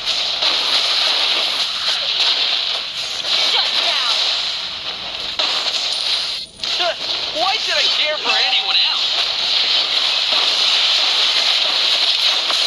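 Fiery blasts whoosh and crackle in a fast fight.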